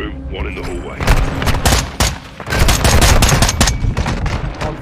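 Rapid rifle shots ring out loudly close by.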